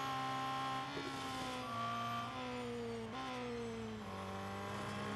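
A racing car engine drops in pitch as the car slows for corners.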